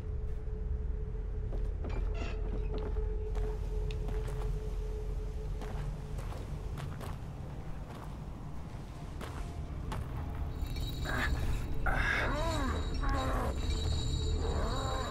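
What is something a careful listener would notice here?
Footsteps crunch over leaves and damp ground.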